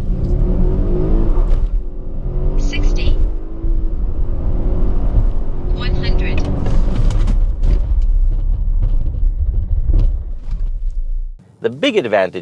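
A car engine roars as the car speeds up, then eases off.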